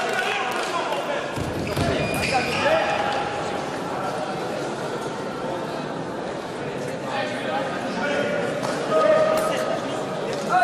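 Fencers' shoes squeak and tap on the floor.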